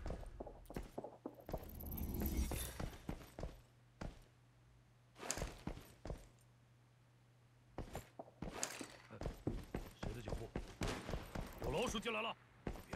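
Footsteps tap quickly across a hard floor.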